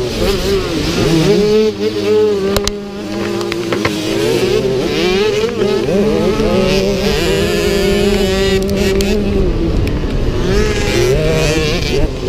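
Other dirt bike engines buzz nearby.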